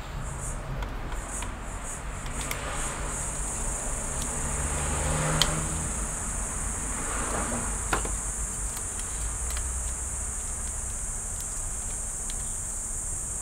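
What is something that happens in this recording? Small plastic parts click and tap as a connector is worked loose by hand.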